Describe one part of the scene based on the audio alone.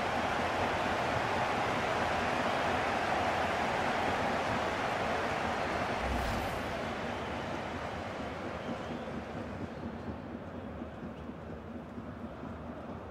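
A large crowd roars and cheers loudly, then slowly fades.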